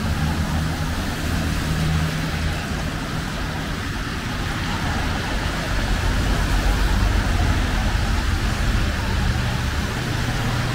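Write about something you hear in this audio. Car tyres hiss on a wet road.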